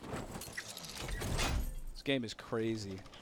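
A glider snaps open with a whoosh.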